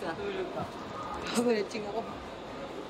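A young man laughs close by.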